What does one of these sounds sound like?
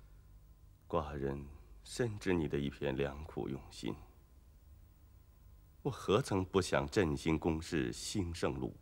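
A middle-aged man speaks calmly and firmly, close by.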